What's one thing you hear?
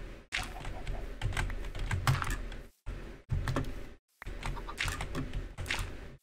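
Dirt crunches as it is dug out, block by block.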